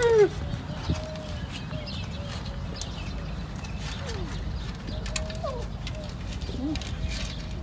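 A young camel calf bleats softly in short calls.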